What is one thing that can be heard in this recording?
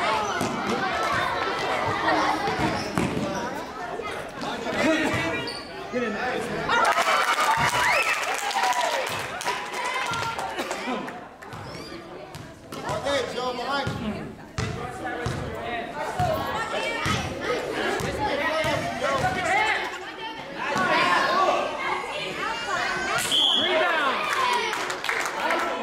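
Sneakers squeak and pound on a gym floor.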